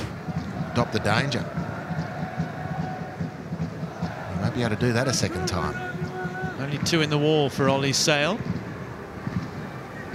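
A crowd murmurs and chants in a large open stadium.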